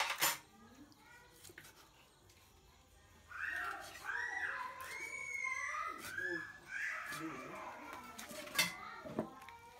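A knife chops sharply on a wooden board.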